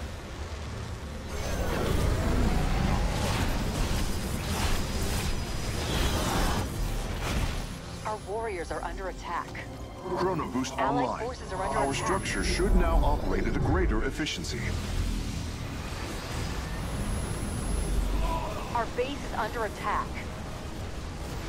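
Deep explosions boom and rumble.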